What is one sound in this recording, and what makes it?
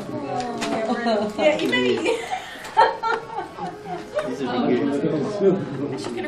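Several adults talk and laugh cheerfully nearby in a lively room.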